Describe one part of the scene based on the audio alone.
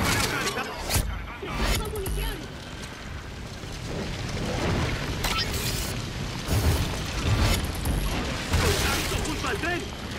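Guns fire in sharp bursts.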